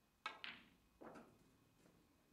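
Snooker balls clack together.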